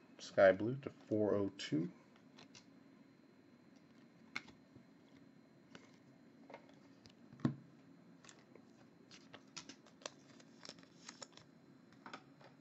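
Cards flick and tap softly as they are shuffled through by hand.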